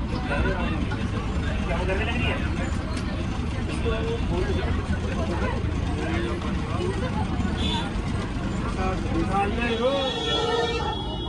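A bus engine rumbles as the bus drives along a road.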